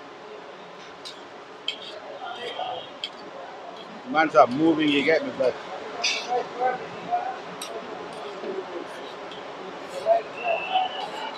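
Metal tongs clink and scrape on a hot griddle.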